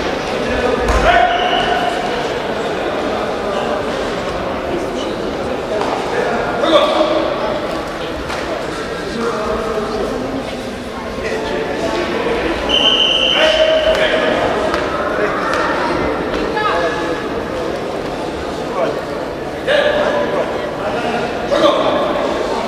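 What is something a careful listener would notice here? A man calls out loudly across an echoing hall.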